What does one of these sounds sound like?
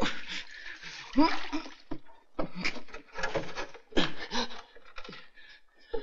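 A man grunts and pants with effort.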